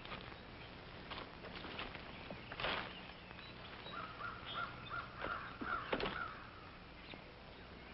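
Leaves and branches rustle as a man pushes through undergrowth.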